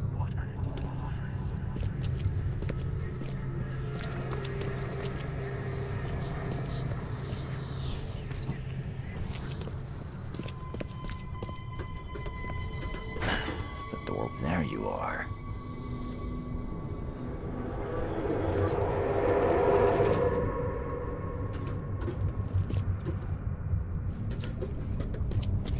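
Footsteps tread on hard floors and metal stairs.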